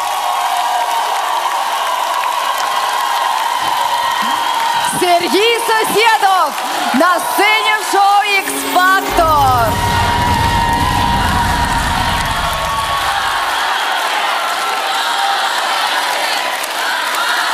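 A large crowd cheers and claps.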